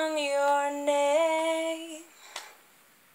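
A young woman sings long, steady notes close by.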